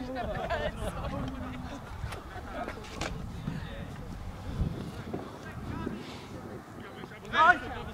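Young men shout to each other from across an open outdoor field.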